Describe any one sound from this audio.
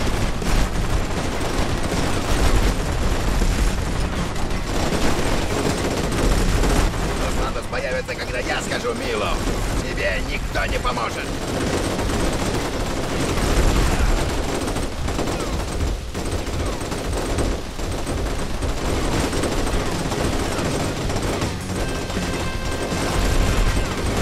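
Rapid gunfire crackles and booms nearby.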